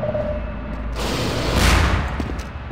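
A portal gun fires with a loud whooshing burst.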